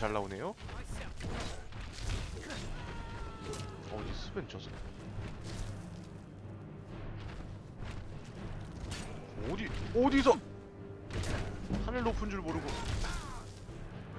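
A heavy axe swings and strikes with dull thuds.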